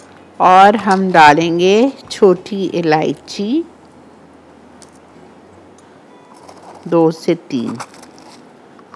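An older woman speaks calmly and clearly into a microphone.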